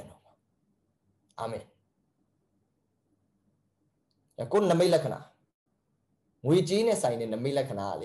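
A young man speaks calmly and closely into a microphone, with pauses.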